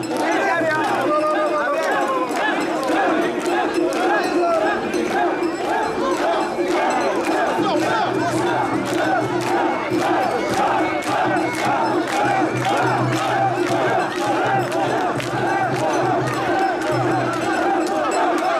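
A crowd of men shouts and cheers all around, close by.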